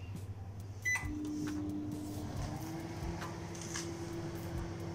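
A microwave oven hums steadily as it runs.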